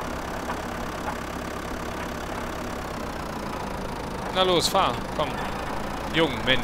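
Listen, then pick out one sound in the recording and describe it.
A tractor engine drones while pulling a cultivator.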